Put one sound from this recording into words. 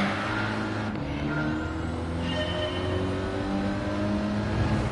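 A car engine revs up and speeds away.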